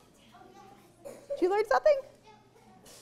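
A young child calls out loudly.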